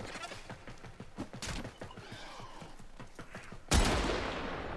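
Rapid weapon shots crack and thud.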